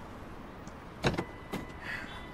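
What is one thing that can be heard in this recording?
Knuckles rap sharply on a car window twice.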